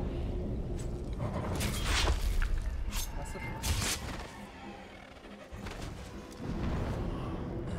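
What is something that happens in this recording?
A bow string twangs as arrows are shot.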